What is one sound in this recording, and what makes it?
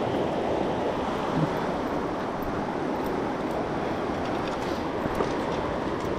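A river rushes over rocks close by.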